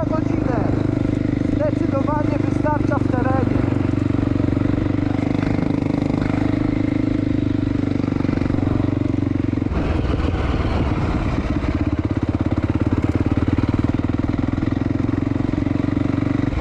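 Tyres rumble and bump over a rutted dirt track.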